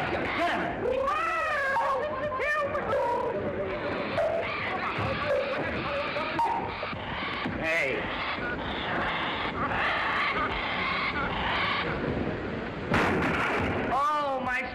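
A parrot squawks shrilly.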